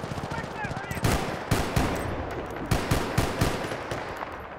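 A rifle fires in short, sharp bursts, with shots ringing out.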